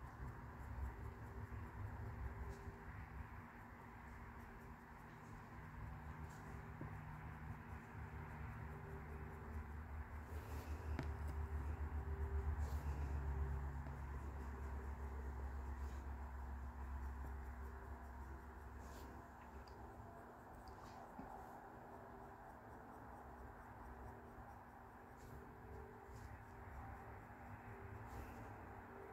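A pencil lightly scratches and strokes close by.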